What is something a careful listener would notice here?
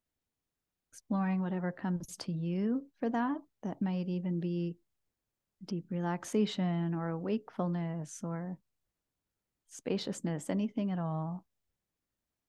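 A woman speaks softly and calmly, close by, through a microphone.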